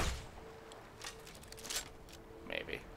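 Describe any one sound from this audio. A crossbow is reloaded with mechanical clicks and creaks.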